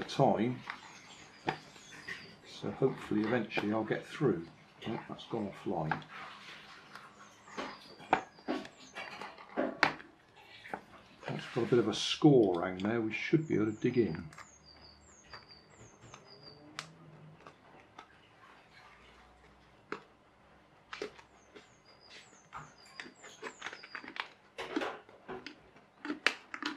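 A plastic bottle crinkles as it is handled.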